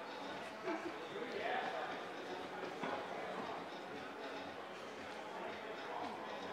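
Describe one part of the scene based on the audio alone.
A crowd of people chatters nearby in a large echoing hall.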